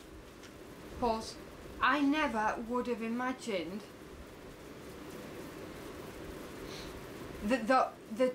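A young woman speaks close to a microphone, with animation.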